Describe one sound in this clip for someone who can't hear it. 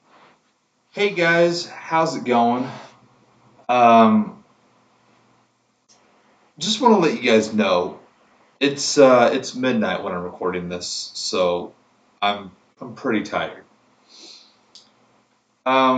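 A young man speaks with animation close to the microphone.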